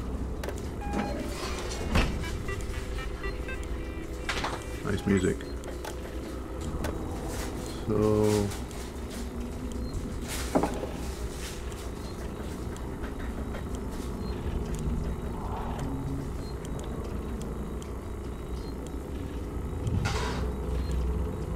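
A computer terminal gives short electronic beeps and clicks.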